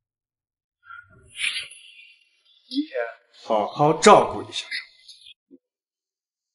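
A young man talks on a phone.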